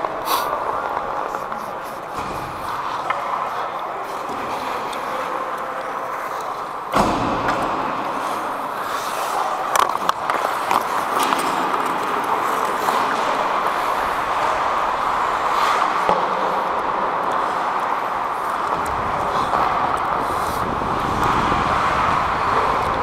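Skate blades scrape and hiss across ice close by.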